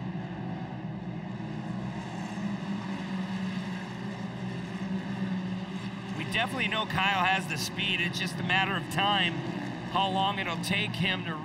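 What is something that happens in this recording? Off-road race buggies roar as they drive over dirt.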